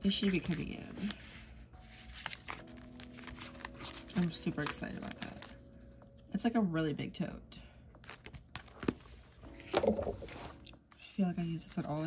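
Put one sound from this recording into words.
Plastic sleeves rustle and crinkle as they are handled.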